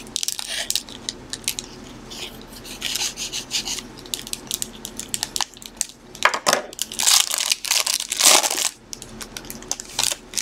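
Plastic wrapping crinkles and tears under a knife.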